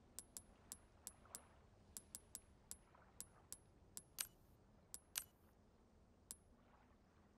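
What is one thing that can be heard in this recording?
Short menu clicks and blips tick quickly one after another.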